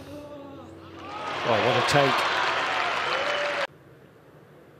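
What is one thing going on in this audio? A crowd cheers and applauds loudly, then stops abruptly.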